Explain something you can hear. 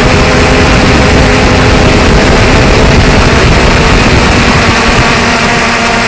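Wind buffets the microphone.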